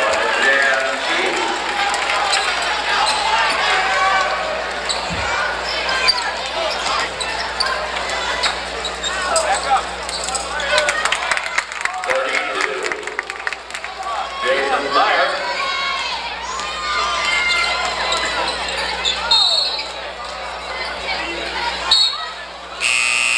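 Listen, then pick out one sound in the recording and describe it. A crowd chatters and cheers loudly in a large echoing gym.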